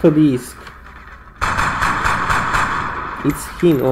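A gun fires a single shot.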